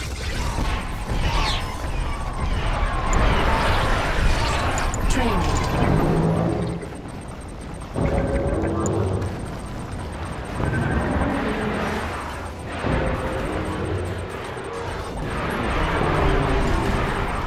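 Laser beams zap and crackle.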